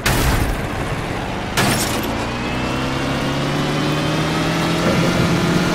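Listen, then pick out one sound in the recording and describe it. A quad bike engine revs steadily, rising in pitch.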